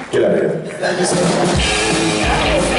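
An electric guitar plays along with a band.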